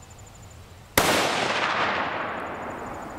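A rifle fires a single loud shot outdoors, and the blast echoes and slowly fades.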